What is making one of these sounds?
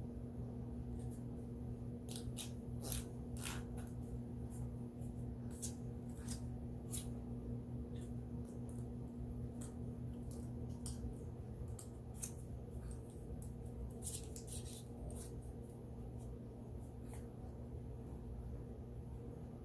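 Small clicks and taps come from hands handling a tool up close.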